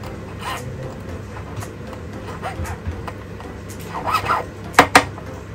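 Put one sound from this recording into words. A small metal tool clicks against metal.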